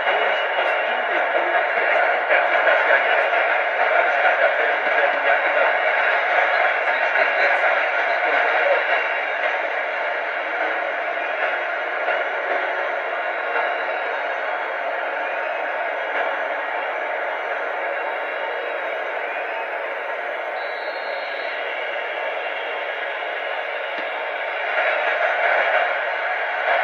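A stadium crowd roars and cheers steadily throughout.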